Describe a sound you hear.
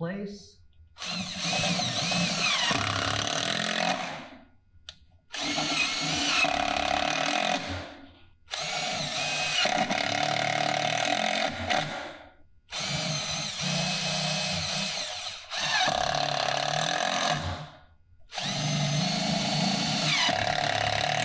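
A cordless impact driver whirs and rattles in repeated bursts as it drives screws into wood.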